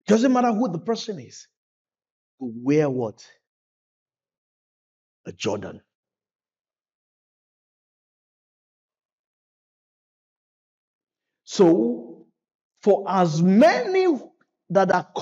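A man preaches with animation into a microphone, in bursts with long pauses.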